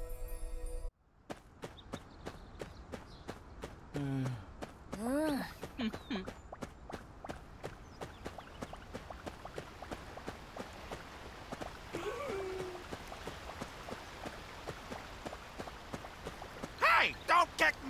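Quick footsteps patter on stone paving.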